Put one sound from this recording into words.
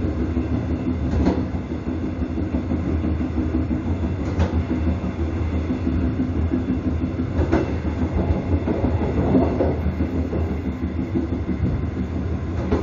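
A train rumbles along rails at speed.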